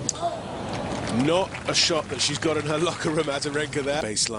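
A crowd applauds and cheers.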